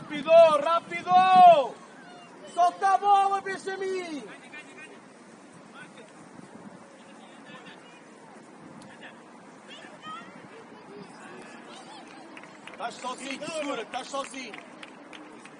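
Young players shout to each other on an open outdoor pitch.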